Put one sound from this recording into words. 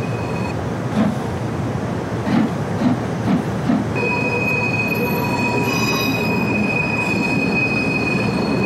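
Train wheels clatter over rail joints as the train pulls away.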